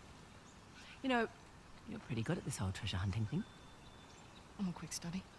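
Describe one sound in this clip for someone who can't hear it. A second young woman answers in a relaxed voice.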